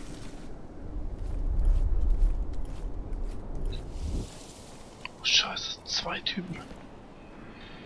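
Footsteps scuff on stone.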